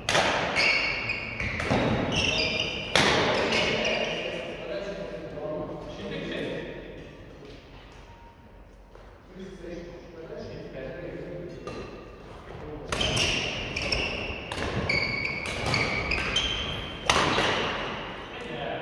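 Badminton rackets smack a shuttlecock in a large echoing hall.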